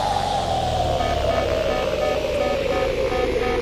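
A warning alarm beeps in short, even pulses.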